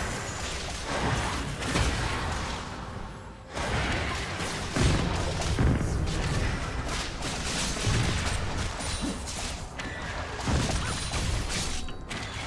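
Video game combat sound effects of spells and weapon hits clash and burst.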